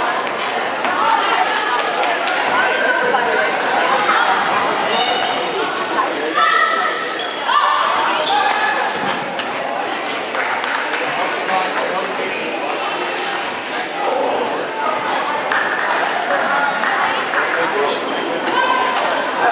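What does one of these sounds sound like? Many people talk and chatter nearby in an echoing hall.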